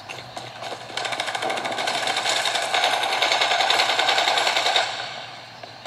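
Rapid gunfire from a video game plays through small speakers.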